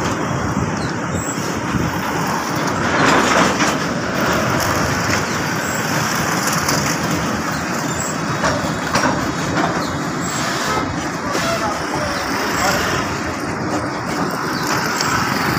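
A freight train rumbles and clatters steadily over a bridge close by.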